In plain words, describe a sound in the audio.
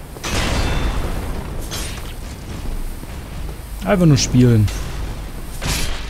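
Metal weapons clash and strike in a game fight.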